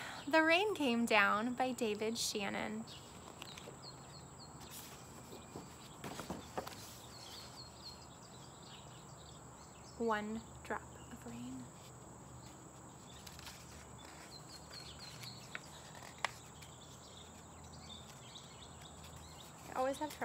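A young woman speaks warmly and close to the microphone.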